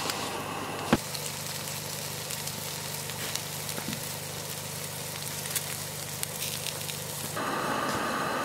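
Meat sizzles on a grill over a wood fire.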